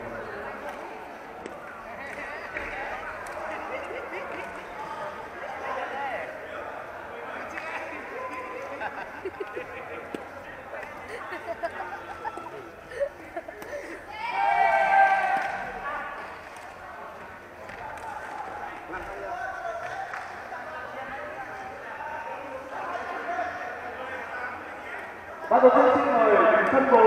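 Many voices chatter throughout a large echoing hall.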